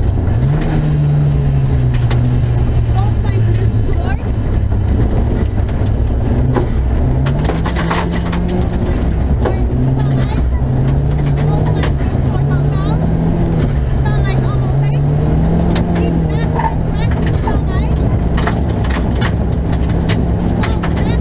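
A rally car engine roars and revs loudly, shifting up and down.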